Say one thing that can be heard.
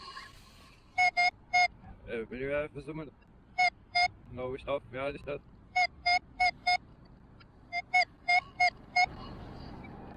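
A metal detector beeps in short, repeated bursts.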